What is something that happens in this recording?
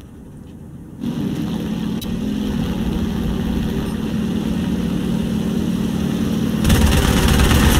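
A piston-engine fighter plane drones in flight.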